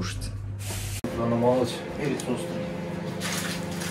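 A man talks with animation.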